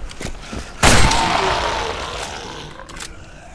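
A rifle shot bangs loudly and rings out.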